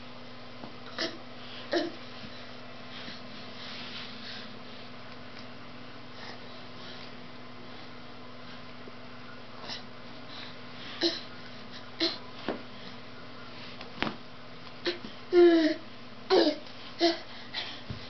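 A baby babbles and squeals close by.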